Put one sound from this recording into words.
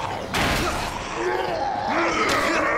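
A zombie groans and snarls up close.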